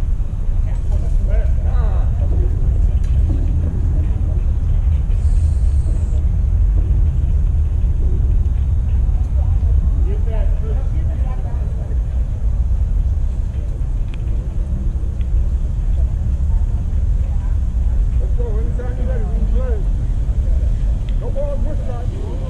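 Wind blows hard across an open outdoor space.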